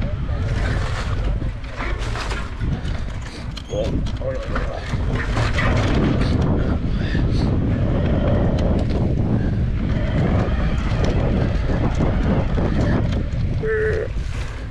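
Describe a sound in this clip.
A bicycle chain and frame clatter over bumps.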